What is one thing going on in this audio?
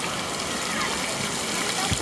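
Water splashes hard as a jet sprays down.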